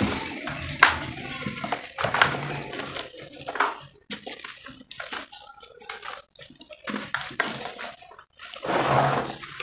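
Wet clay squishes and crumbles between hands.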